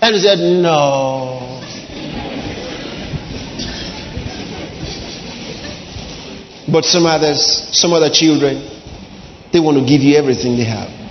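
A man preaches with animation into a microphone in a large echoing hall.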